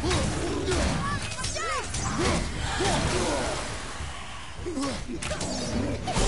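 An axe strikes a foe with heavy thuds.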